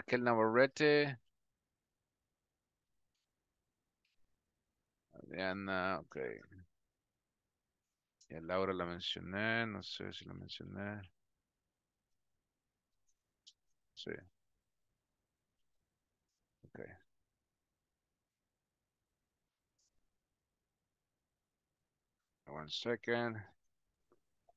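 A man speaks calmly into a microphone, heard over an online call, in short bursts with pauses.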